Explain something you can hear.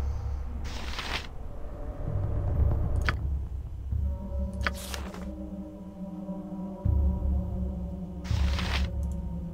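Short interface clicks sound.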